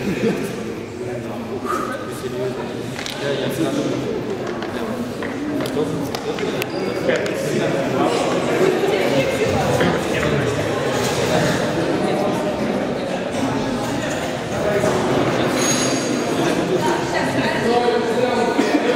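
Young men chatter and talk among themselves in a large echoing hall.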